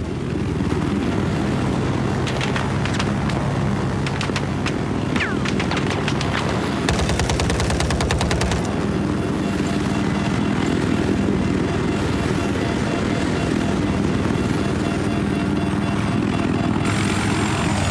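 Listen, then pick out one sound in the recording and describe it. A helicopter's rotor thuds and its engine whines steadily.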